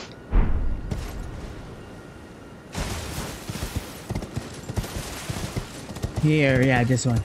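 Hooves clop on rocky ground.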